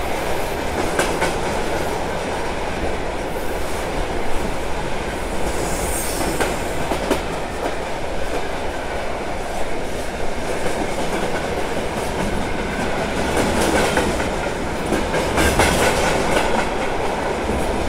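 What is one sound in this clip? A passing freight train roars and rattles steadily close by.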